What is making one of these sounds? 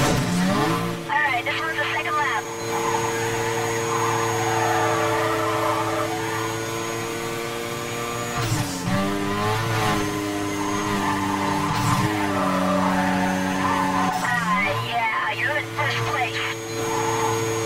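Tyres screech as a car slides through bends.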